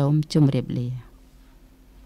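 A man speaks briefly into a microphone.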